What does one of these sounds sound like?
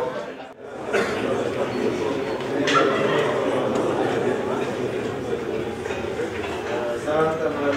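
A brass band plays a lively tune with tubas and saxophones.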